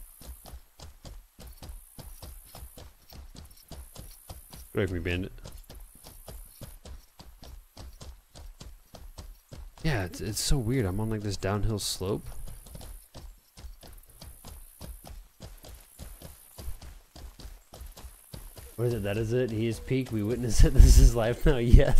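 Hooves thud in a quick, steady gallop.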